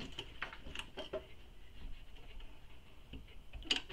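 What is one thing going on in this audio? A sewing machine hums and whirs steadily.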